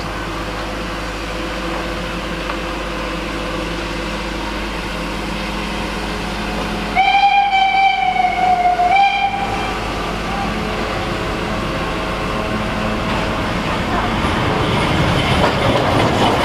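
A steam locomotive chuffs steadily in the distance.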